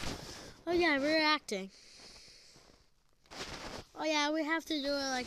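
A young child speaks loudly and playfully close to a phone microphone.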